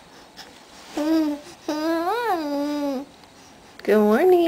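A baby coos and babbles up close in high sing-song sounds.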